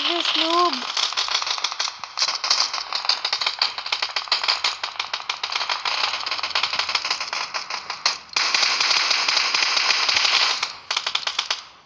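Rapid rifle gunfire crackles in quick bursts.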